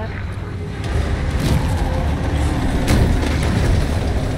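A heavy truck engine roars as it approaches.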